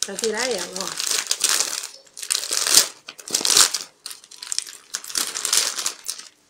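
A plastic bag crinkles loudly as it is handled.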